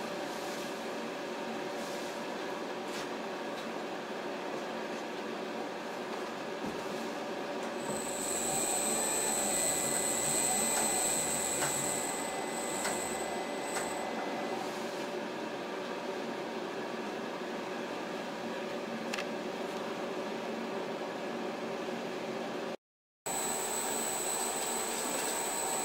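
A polishing machine hums steadily as a tool grinds over glass.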